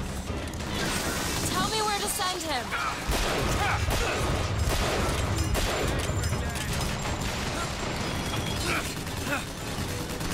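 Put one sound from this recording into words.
Gunshots crack and boom in quick bursts.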